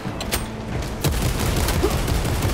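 Gunfire blasts rapidly.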